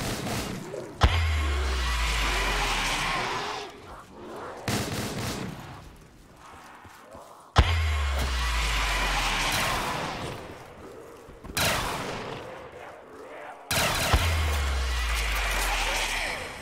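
A sniper rifle fires loud booming shots.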